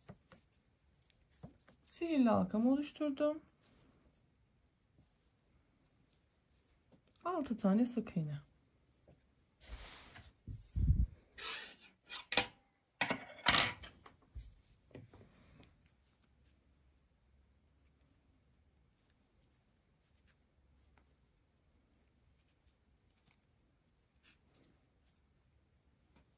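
Yarn rustles softly as it is pulled and looped with a crochet hook.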